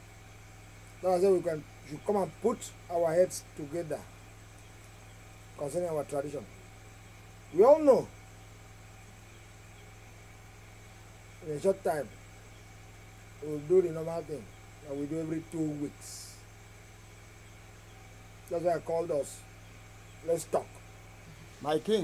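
An elderly man speaks slowly and calmly, close by, with pauses between phrases.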